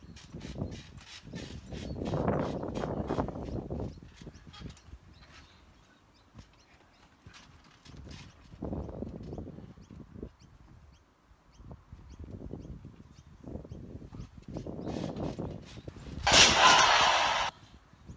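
Bodies thump and bounce on a springy trampoline mat.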